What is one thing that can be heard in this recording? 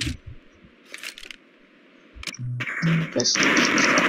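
A pair of pistols is drawn with metallic clicks.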